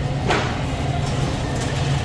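A shopping cart rolls across a hard floor.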